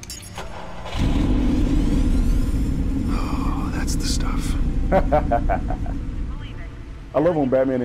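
A car engine starts and roars at idle.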